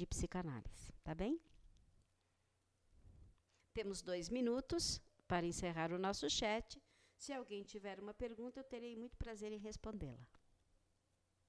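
A middle-aged woman speaks calmly into a microphone close by.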